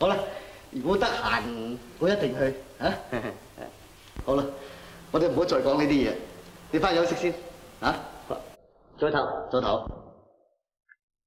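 A younger man answers calmly.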